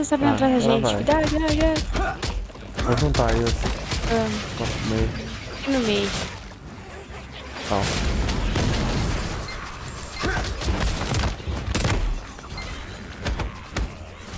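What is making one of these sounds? Magic blasts and weapon strikes crash and crackle in quick bursts.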